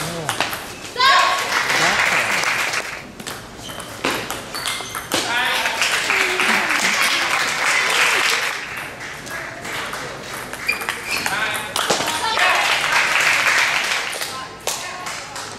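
A crowd cheers and claps in bursts inside a large echoing hall.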